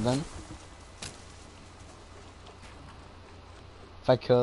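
Wooden walls snap into place with a clatter.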